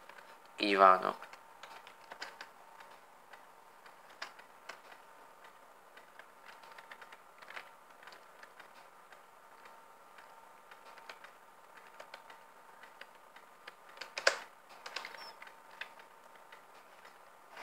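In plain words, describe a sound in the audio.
Soft electronic menu clicks sound from a game now and then.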